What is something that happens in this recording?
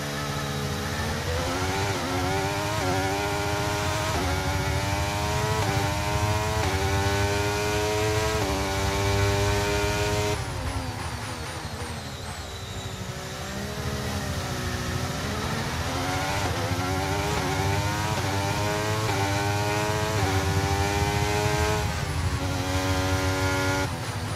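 A racing car engine screams loudly, rising in pitch through each gear and dropping as it shifts down for corners.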